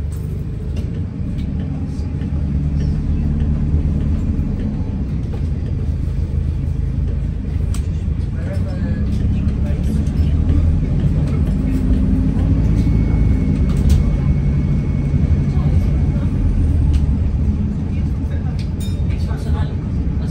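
A bus engine rumbles and hums steadily while driving.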